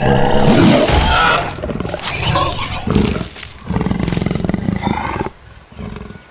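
A large cat growls low and close.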